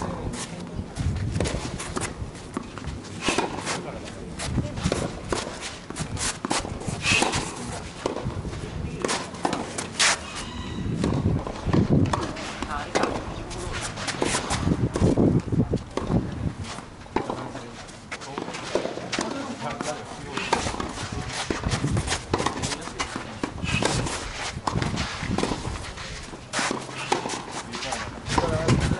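Footsteps shuffle and scrape on a hard court.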